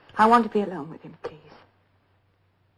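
A woman speaks softly and closely.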